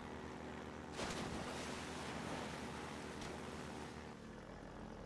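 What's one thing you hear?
Water splashes and sprays.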